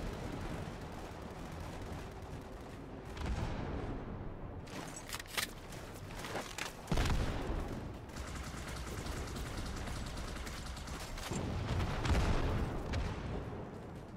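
Footsteps crunch steadily over gravel and dirt.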